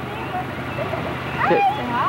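A woman talks to a baby.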